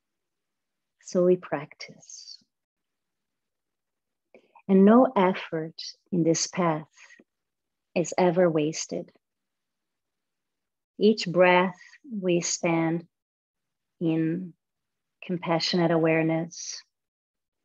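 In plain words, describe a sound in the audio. A woman speaks calmly in short phrases through a microphone.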